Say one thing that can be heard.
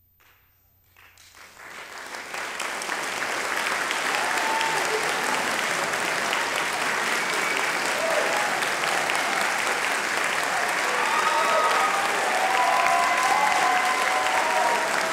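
An audience applauds in a large hall, the clapping swelling and then holding steady.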